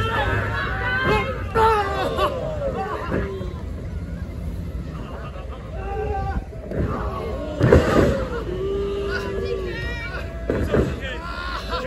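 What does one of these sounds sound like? Bodies slam onto a wrestling ring mat with loud thuds.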